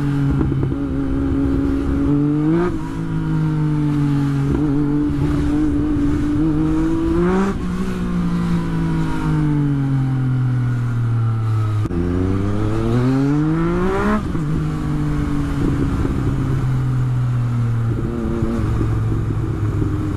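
A motorcycle engine hums and revs up through the gears as it rides along.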